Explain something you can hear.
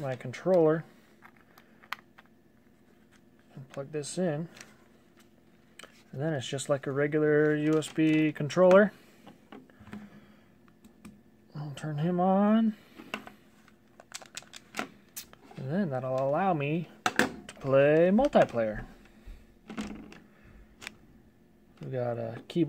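Plastic parts knock and rattle as they are handled.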